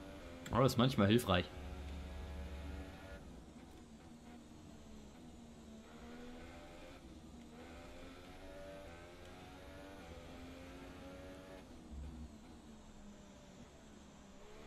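A racing car engine whines at high pitch, rising and falling as it shifts gears.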